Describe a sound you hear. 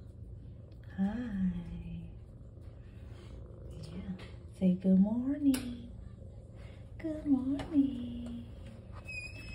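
A cat meows loudly and repeatedly up close.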